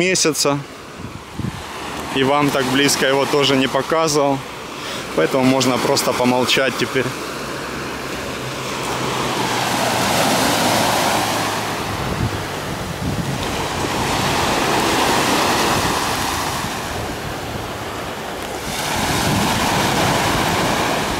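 Small waves wash in and break on a pebble shore in surges.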